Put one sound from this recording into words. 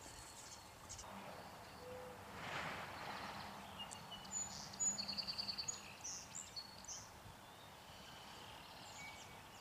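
A dog's paws thump on a wooden ramp.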